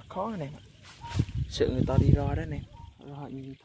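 A bird flaps its wings.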